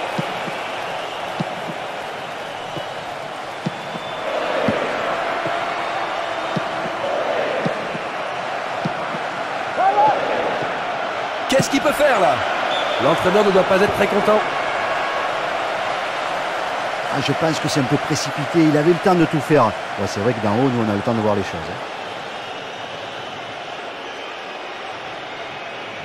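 A stadium crowd roars and murmurs.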